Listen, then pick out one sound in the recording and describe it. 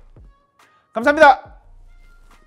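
A young man lets out a loud exclaiming cry.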